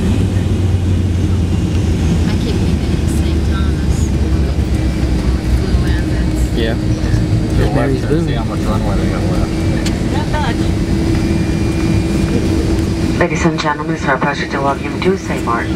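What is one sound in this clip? An aircraft engine rumbles and hums steadily, heard from inside the cabin.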